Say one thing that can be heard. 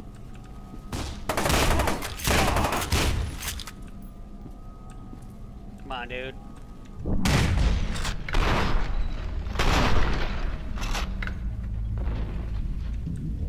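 Rapid gunfire bursts loudly in short volleys.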